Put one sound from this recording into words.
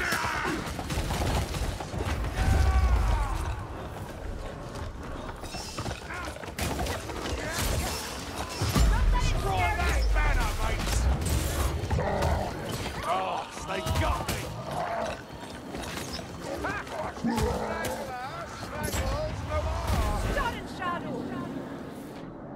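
Sword blades slash and strike repeatedly.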